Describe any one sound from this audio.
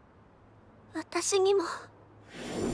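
A young girl speaks softly and tearfully.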